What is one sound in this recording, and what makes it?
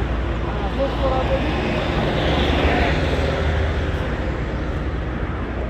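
Footsteps scuff along a paved path.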